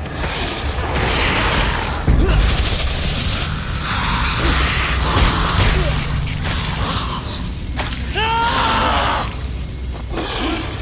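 Magical energy bursts whoosh and crackle.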